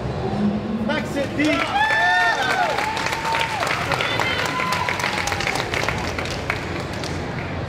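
A large crowd cheers and whistles loudly in a big hall.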